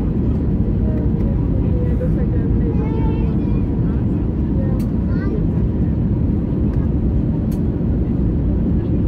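Jet engines roar steadily with a deep rumble inside an airliner cabin.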